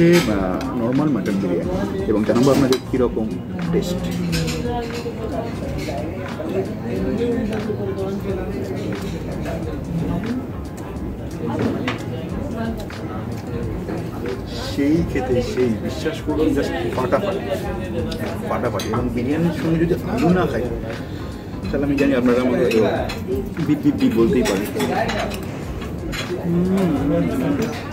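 A spoon and fork scrape and clink on a plate.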